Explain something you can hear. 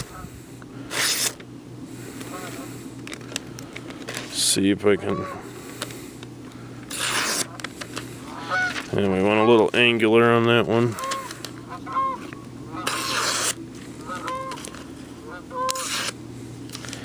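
A blade slices through stiff paper.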